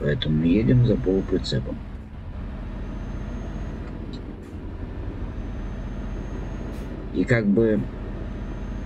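A truck engine hums steadily at low speed.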